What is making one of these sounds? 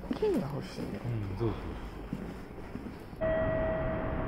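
A man speaks close by in a hushed voice.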